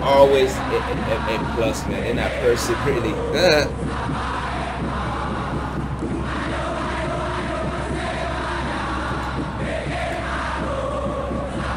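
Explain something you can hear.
A large stadium crowd chants and sings in unison, heard through a loudspeaker.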